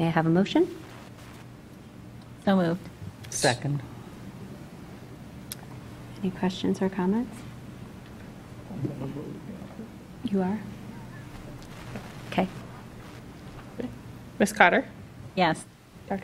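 A woman speaks calmly into a microphone, in short phrases with pauses.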